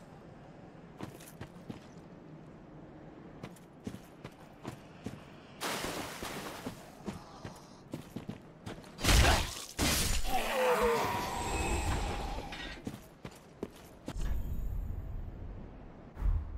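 Footsteps crunch on stone and grass.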